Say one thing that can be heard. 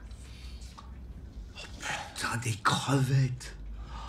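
A middle-aged man speaks in surprise, close by.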